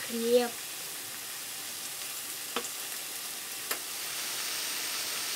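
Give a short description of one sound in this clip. Bread sizzles as it fries in hot oil in a pan.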